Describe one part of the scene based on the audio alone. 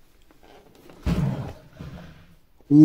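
A heavy metal weight plate rolls in and lands with a dull thud.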